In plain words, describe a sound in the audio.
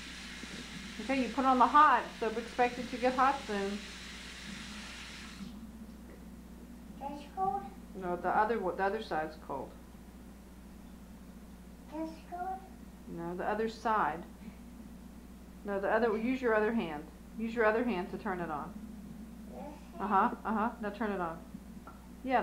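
A young child talks in a high voice, close by.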